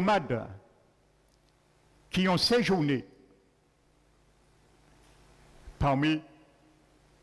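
A man preaches with animation through a microphone in short bursts, in an echoing hall.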